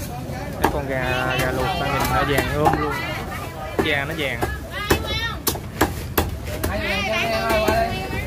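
A cleaver chops through roast duck on a wooden chopping block.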